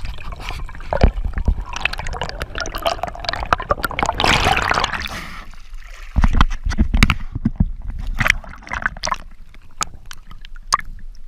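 Water gurgles and rumbles underwater.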